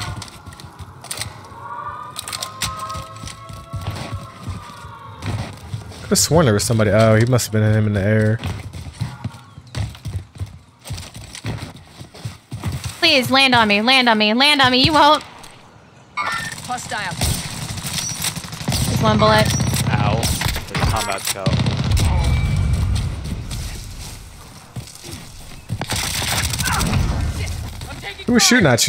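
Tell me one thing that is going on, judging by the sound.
Rifle shots crack now and then.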